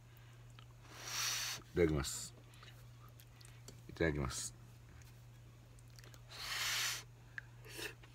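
An elderly man slurps soup noisily.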